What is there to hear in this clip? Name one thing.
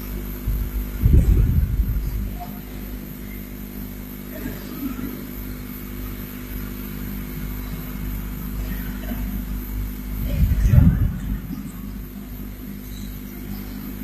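An elderly woman speaks slowly into a microphone, heard through a loudspeaker.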